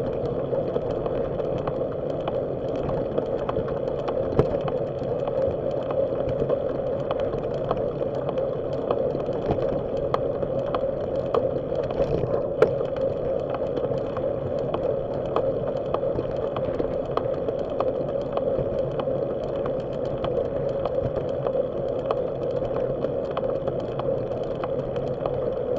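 Bicycle tyres roll and rattle over a rough paved path.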